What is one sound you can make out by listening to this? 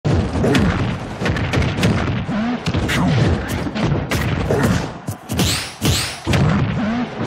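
Punches and kicks land with sharp, rapid smacks.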